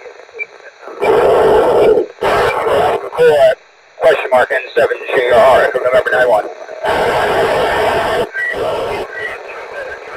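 A handheld radio crackles loudly with bursts of static.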